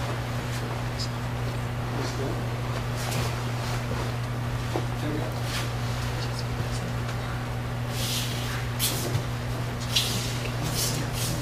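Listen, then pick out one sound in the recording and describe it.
Bare feet thump and slide on a padded mat.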